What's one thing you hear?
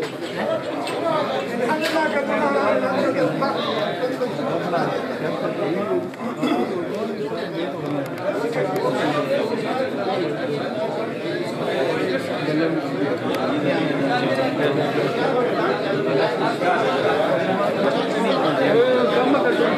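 A crowd of men chatter around.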